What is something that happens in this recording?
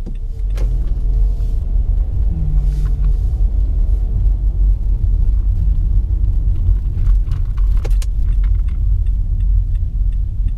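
A car engine hums steadily from inside while driving.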